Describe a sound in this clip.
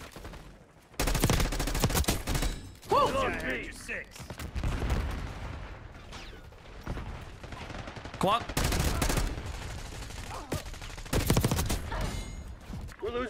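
Gunfire rattles in rapid bursts from a game.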